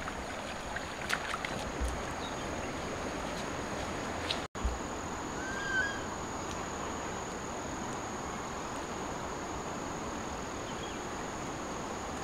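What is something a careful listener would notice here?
A woman walks barefoot on a dirt path.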